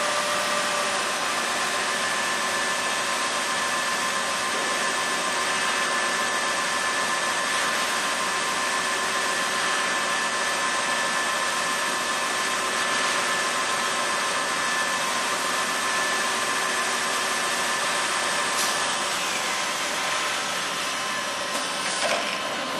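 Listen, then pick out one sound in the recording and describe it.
A lathe whirs steadily as it cuts metal.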